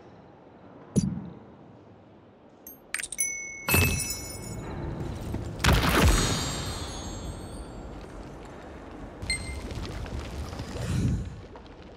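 Game sound effects chime and whoosh.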